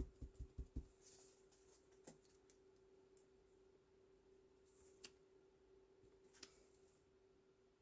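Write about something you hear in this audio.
Paper rustles as hands lift and move it.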